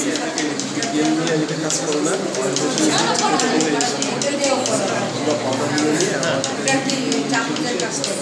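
A spoon clinks quickly against a bowl as eggs are whisked.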